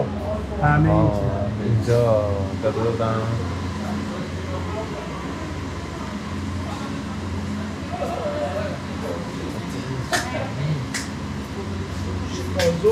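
Refrigerated display cases hum steadily.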